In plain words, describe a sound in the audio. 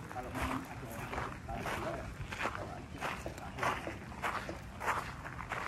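Footsteps crunch steadily on gravel outdoors.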